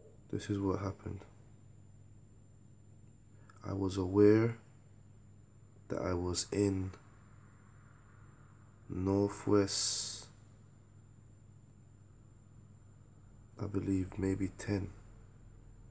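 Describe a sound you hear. A man speaks calmly in short phrases close to the microphone, with pauses between them.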